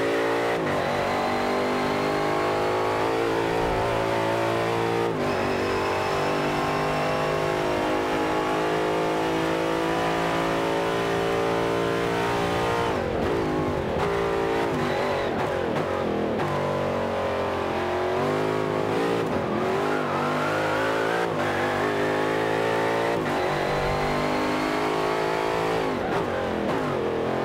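A racing car engine roars loudly, revving up through the gears and dropping between shifts.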